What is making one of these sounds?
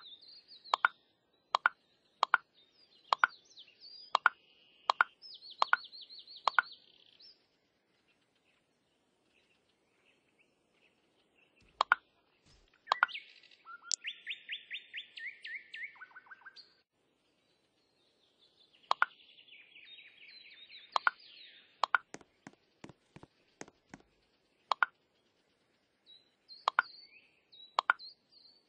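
Blocks snap into place with short, sharp clicks.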